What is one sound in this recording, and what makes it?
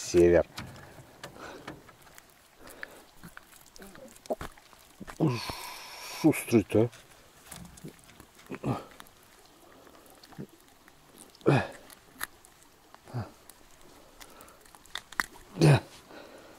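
A metal lure clicks softly as it is worked free from a fish's mouth.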